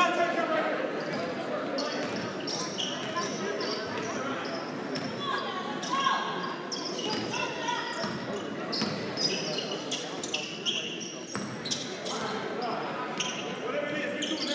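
Sneakers squeak sharply on a hardwood court.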